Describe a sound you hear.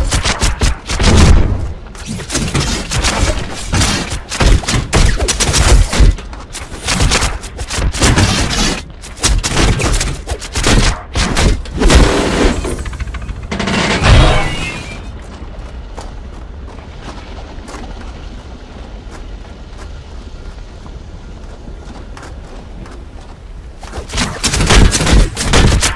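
Explosions burst with loud booms.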